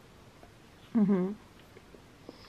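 A young woman hums with pleasure while eating.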